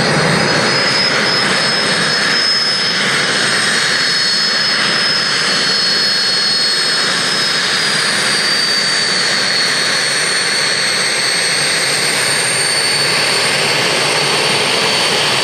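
A jet engine whines and roars loudly and steadily close by.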